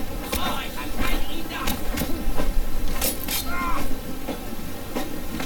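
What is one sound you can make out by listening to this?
Punches land with sharp thuds during a brawl.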